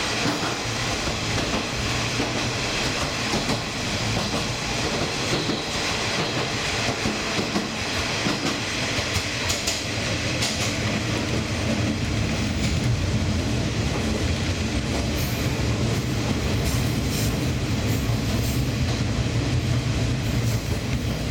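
Train wheels clatter and squeal on the track.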